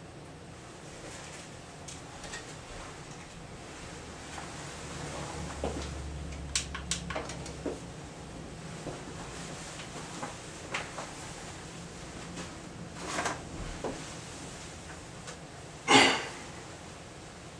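Objects knock and clatter on a table nearby.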